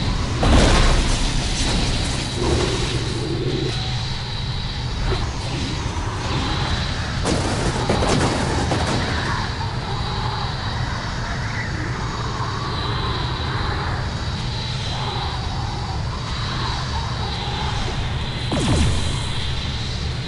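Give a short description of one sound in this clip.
A hero whooshes through the air in sudden rushes.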